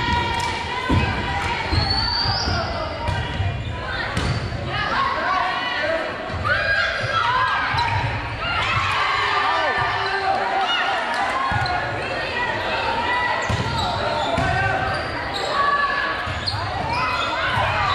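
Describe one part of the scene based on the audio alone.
A volleyball is struck with sharp smacks.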